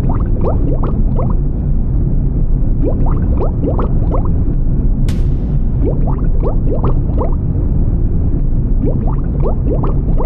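Air bubbles burble upward in quick bursts.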